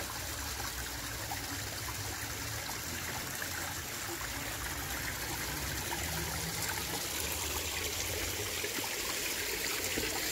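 Water trickles and splashes steadily down over stone steps.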